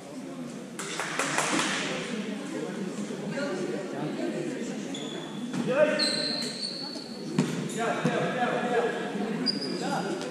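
Voices of players and spectators echo through a large hall.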